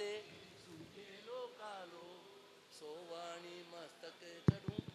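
A young man sings softly through a microphone.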